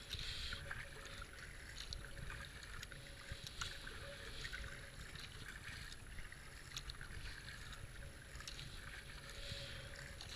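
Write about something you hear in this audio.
A paddle splashes rhythmically into water.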